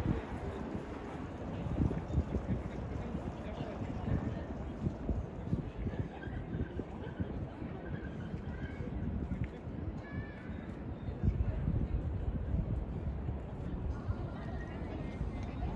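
People chatter faintly in the distance.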